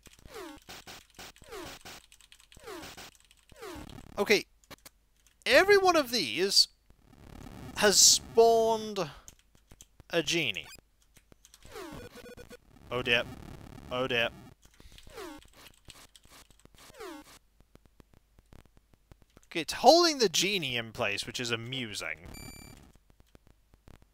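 Short electronic game bleeps and blips sound in quick bursts.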